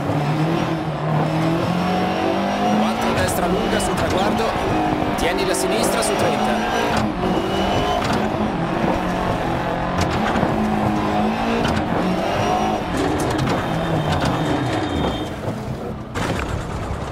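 A rally car engine roars and revs up and down at high speed.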